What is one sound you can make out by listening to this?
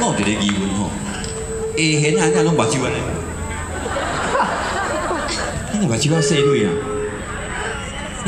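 A violin plays a melody over loudspeakers.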